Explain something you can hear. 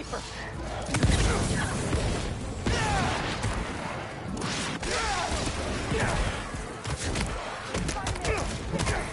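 Punches and blows thud in a fast fight.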